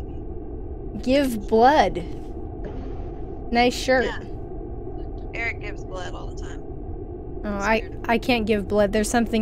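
A young woman speaks with animation close to a headset microphone.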